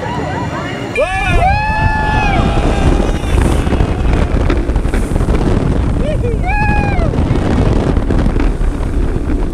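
Wind rushes loudly past up close.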